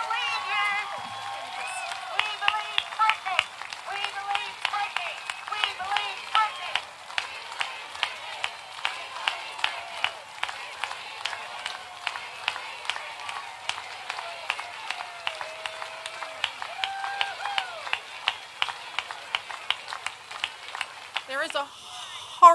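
A large outdoor crowd applauds.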